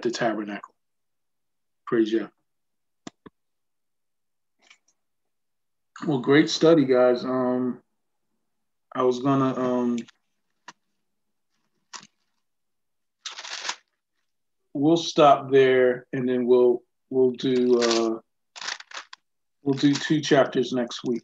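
A man speaks with animation over an online call, in bursts with pauses.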